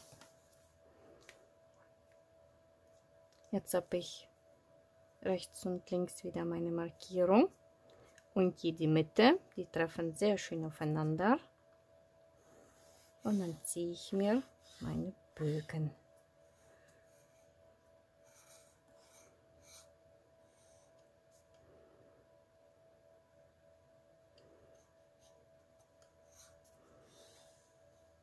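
A pencil scratches lightly across paper.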